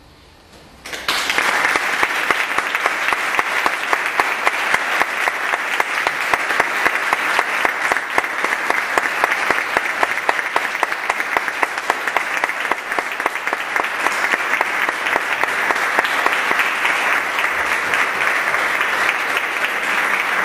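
An audience claps steadily in an echoing hall.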